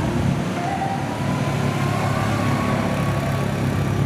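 A quad bike engine rumbles as it rolls past.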